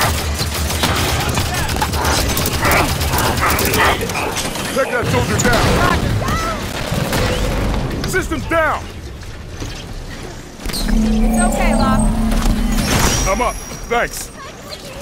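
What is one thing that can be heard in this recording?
Gunfire and explosions crackle from a video game.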